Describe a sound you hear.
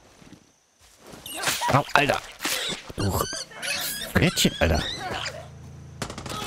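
A large animal snarls and roars close by.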